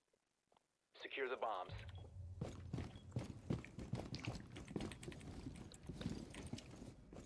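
Footsteps thud on a hard floor as a soldier walks.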